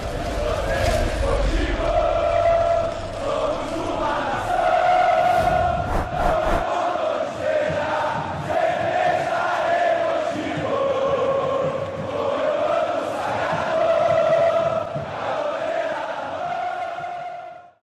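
A large crowd sings a chant together in a stadium.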